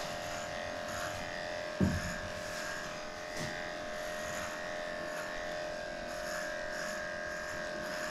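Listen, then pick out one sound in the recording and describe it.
Electric clippers buzz steadily.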